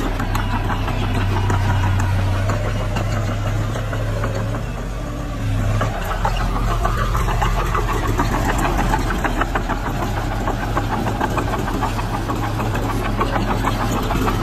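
A bulldozer's steel tracks clank and squeak as it pushes dirt.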